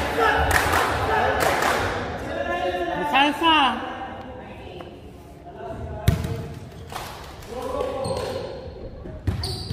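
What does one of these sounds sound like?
Young men shout and call out across a large echoing gym.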